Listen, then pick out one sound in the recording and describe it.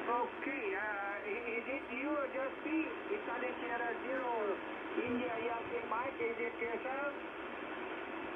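A distorted voice talks over a radio receiver's loudspeaker, warbling in pitch.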